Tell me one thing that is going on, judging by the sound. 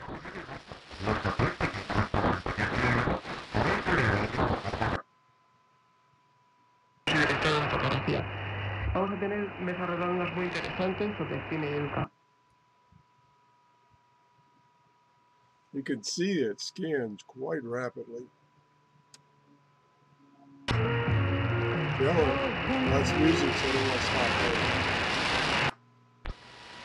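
A shortwave radio hisses and crackles with static between stations.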